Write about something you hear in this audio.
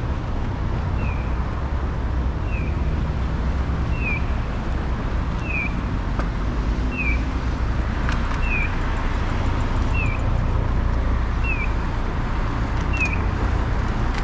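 A pedestrian crossing signal chirps at a steady, even pace.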